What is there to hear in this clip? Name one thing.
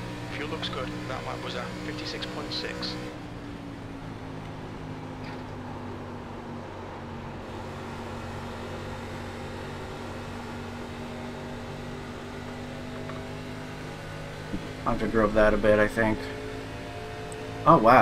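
A race car engine drones steadily at high speed.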